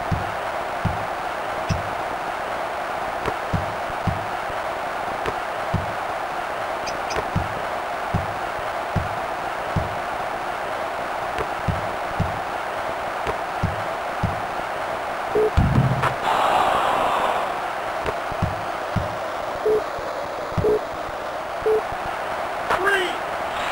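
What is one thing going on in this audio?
A basketball bounces in steady, regular thumps as it is dribbled.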